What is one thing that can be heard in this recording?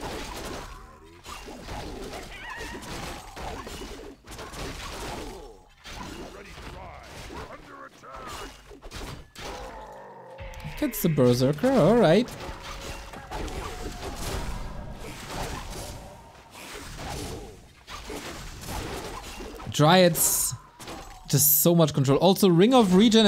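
Weapons clash and spells crackle in a game battle.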